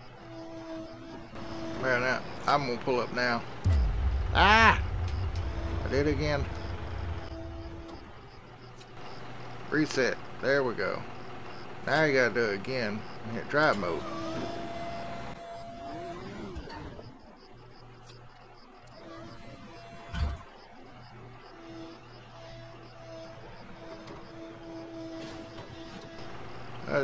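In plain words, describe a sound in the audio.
A diesel backhoe loader engine idles.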